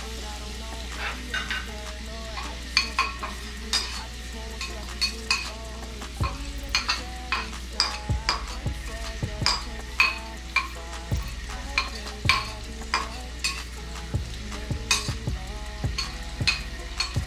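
A metal spatula scrapes and taps against a ceramic bowl.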